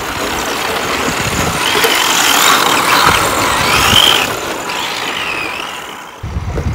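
Tyres skid and scrape over loose dirt.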